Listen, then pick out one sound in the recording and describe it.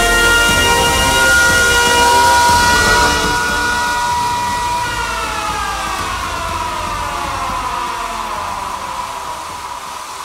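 Water gushes loudly out of a tunnel.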